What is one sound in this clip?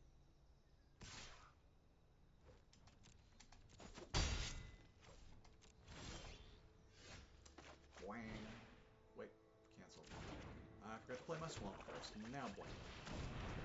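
Digital game sound effects whoosh and chime as cards are played.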